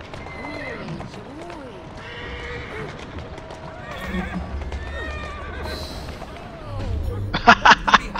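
Horse hooves clop on stone.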